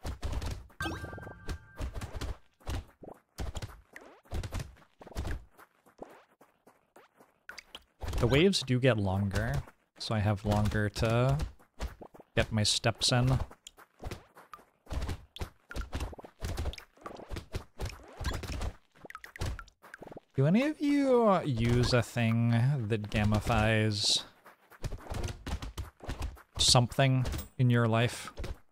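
Quick electronic zaps and hit sounds from a video game crackle rapidly.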